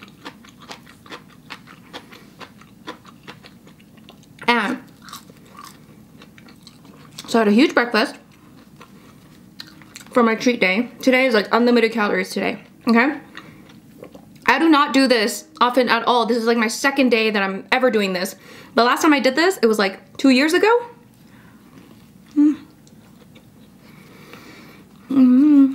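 Crisp food crunches as a young woman chews.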